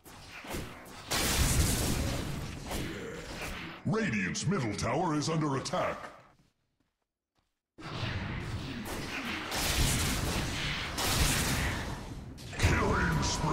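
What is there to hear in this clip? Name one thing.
Magic spells crackle and blast in a fight.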